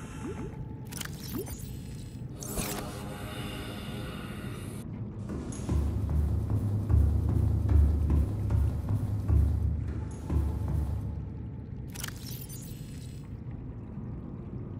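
A soft electronic chime sounds as a menu opens.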